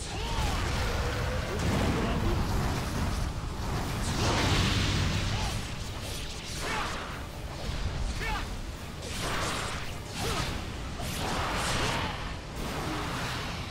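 Fiery blasts roar and crackle.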